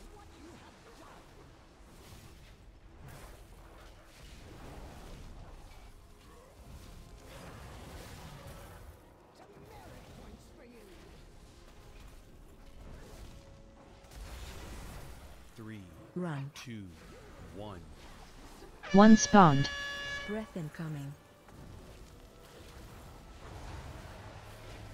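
Magic spell effects whoosh and crackle in a game battle.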